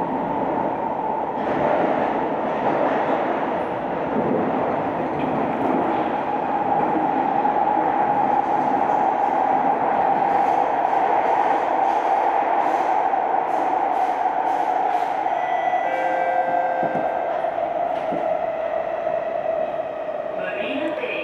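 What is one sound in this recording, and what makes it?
A train rumbles and whines steadily as it runs along the track.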